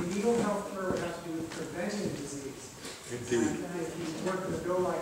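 An older man talks calmly nearby.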